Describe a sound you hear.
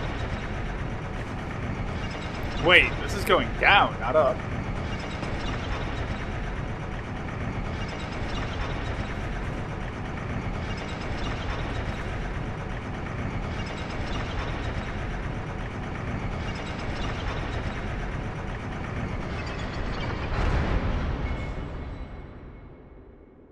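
A heavy stone lift rumbles and grinds steadily as it rises, then slows to a stop.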